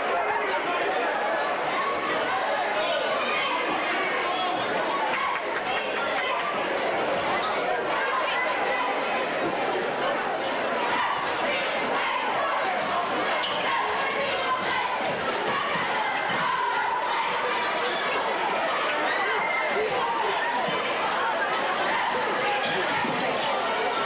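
A large crowd cheers and chatters in an echoing gym.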